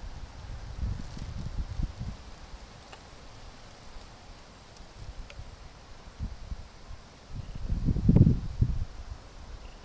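Water laps softly as a duck paddles along.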